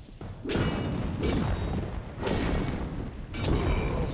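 Sword blows swish and strike in quick bursts.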